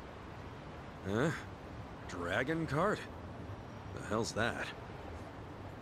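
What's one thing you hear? A younger man answers in a surprised, gruff voice, close by.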